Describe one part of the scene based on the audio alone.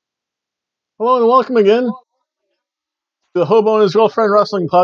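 A middle-aged man speaks close to a microphone in short bursts, with animation.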